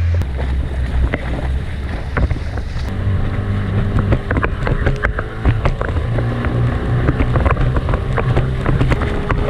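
Water splashes and slaps against the boat's hull.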